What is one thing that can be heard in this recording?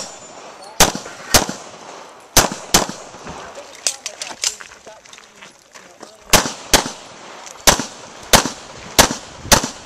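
A pistol fires sharp shots outdoors, often in quick pairs.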